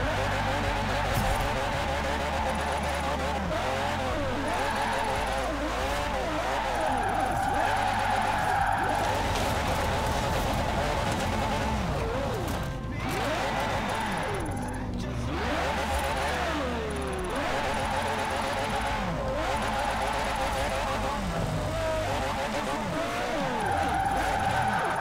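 A car engine revs loudly and rises and falls in pitch.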